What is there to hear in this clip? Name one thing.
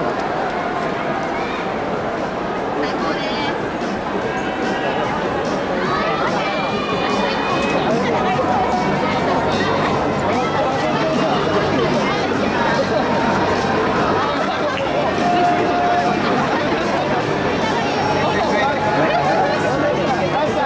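A large stadium crowd chatters and cheers in a big echoing space.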